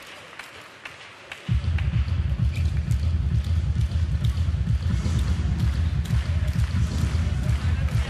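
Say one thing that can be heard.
A volleyball is struck hard with a hand.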